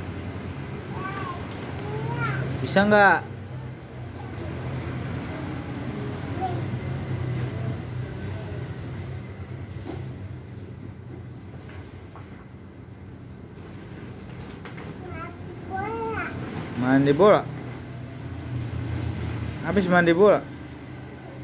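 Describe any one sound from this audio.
A young child squeals and babbles nearby.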